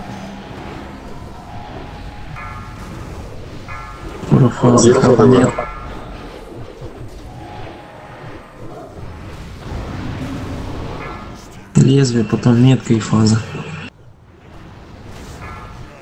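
Combat sound effects of spells and blows clash and crackle continuously.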